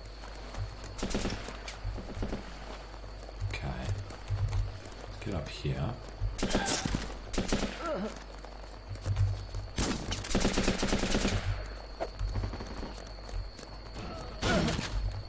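Gunfire rattles in short, rapid bursts.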